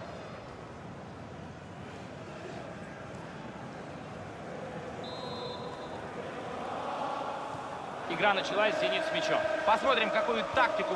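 A large crowd murmurs and chants steadily in a stadium.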